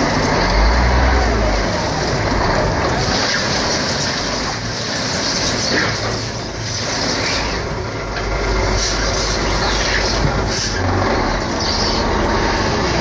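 A dump truck engine rumbles steadily nearby.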